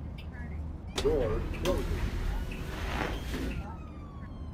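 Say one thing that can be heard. Compressed air hisses loudly as bus doors open.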